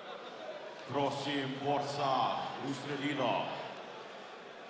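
A man announces loudly over a loudspeaker.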